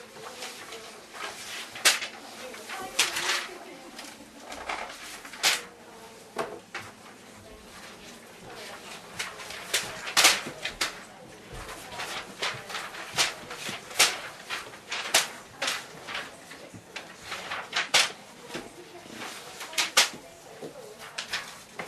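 Sheets of paper rustle and flap as they are tossed about.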